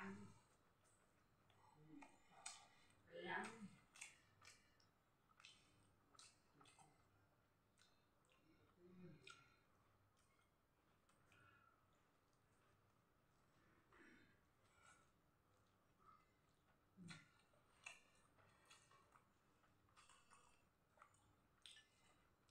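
A man slurps noodles.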